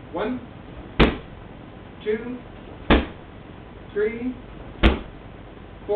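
A foot kicks a padded shield with sharp thuds.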